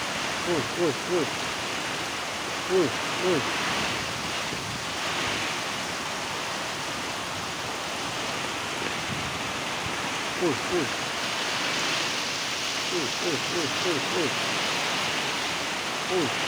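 Rain drums on a metal roof.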